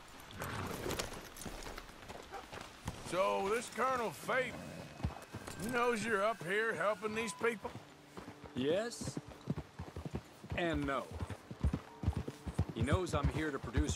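Horse hooves clop on a dirt trail.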